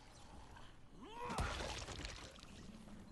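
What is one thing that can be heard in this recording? A heavy blow thuds against a body.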